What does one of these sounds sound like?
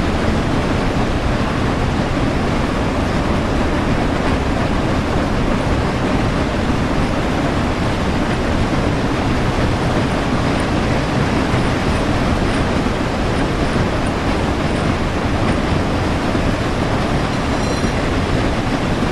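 A steam locomotive rumbles and roars steadily as it runs along the track.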